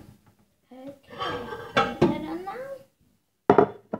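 A young girl talks close to the microphone.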